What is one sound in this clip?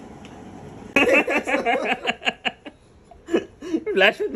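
A young man laughs heartily close by.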